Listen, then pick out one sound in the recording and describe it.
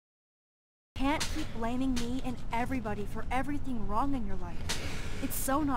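A young woman speaks earnestly and close.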